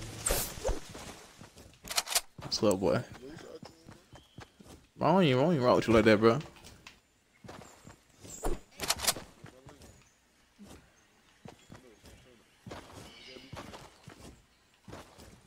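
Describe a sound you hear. Quick footsteps patter over grass and wooden boards.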